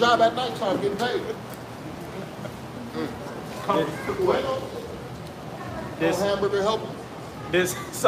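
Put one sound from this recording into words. Several young men talk and laugh with animation close by, outdoors.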